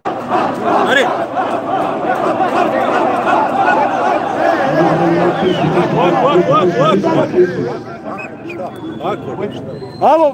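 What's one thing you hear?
A crowd of men and women talk and shout over one another close by, outdoors.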